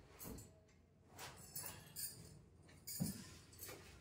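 Cloth rustles as a bedspread is smoothed.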